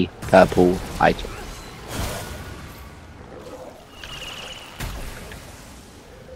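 Gunshots ring out.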